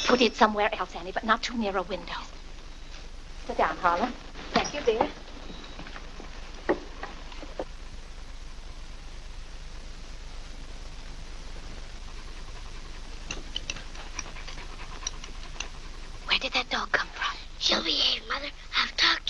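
A woman speaks sharply and firmly up close.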